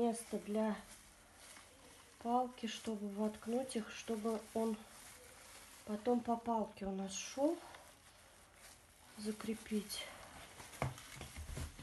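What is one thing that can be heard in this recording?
Gloved hands rustle and press into loose soil.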